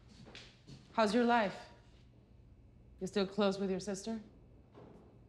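A young woman speaks quietly and tensely.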